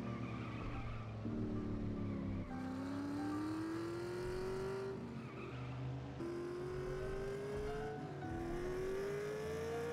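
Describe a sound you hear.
A car engine revs up in rising pulls, dropping briefly between gear shifts.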